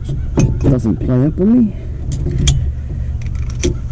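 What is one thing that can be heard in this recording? Glass bottles and cans clink and rattle as they are handled.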